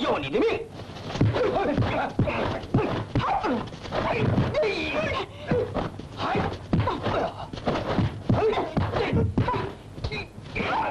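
Fists and kicks strike bodies in a fight.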